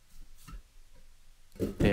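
A knife scrapes across a wooden board.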